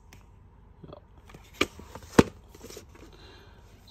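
A cardboard game box rustles and taps as hands handle it.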